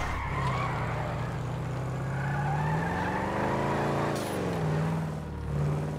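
Car tyres skid and screech on pavement.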